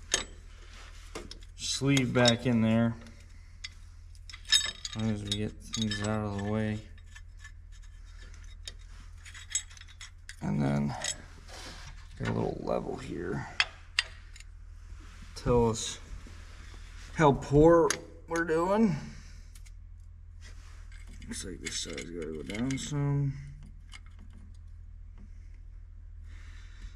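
Metal parts clink and knock lightly against an engine.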